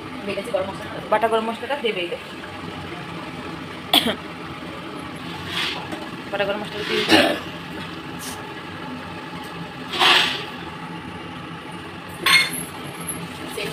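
A pot of stew bubbles and simmers.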